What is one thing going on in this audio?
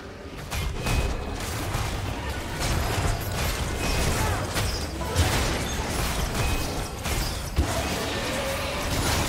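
Spell effects crackle and boom in a fight between game characters.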